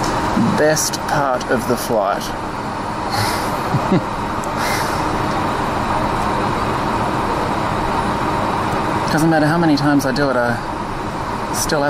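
Jet engines roar steadily as an airliner taxis, heard from inside the cabin.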